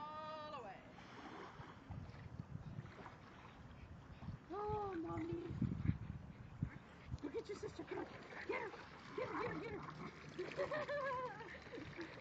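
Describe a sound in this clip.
Water splashes as feet and paws wade through shallow water.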